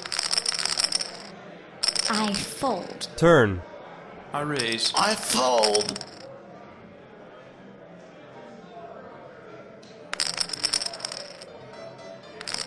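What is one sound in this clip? Poker chips clatter onto a table.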